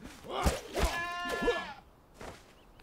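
A goat bleats loudly.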